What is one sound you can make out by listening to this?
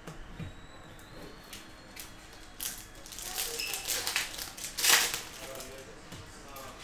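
Trading cards shuffle and slap against each other.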